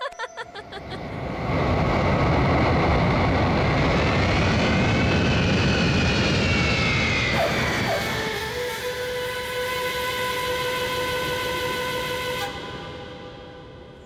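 A jet airliner roars loudly as it lands, its engine whine rising and falling.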